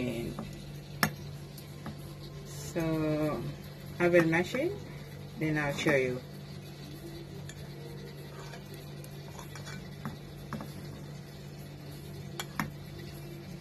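A metal spoon clinks against a metal bowl.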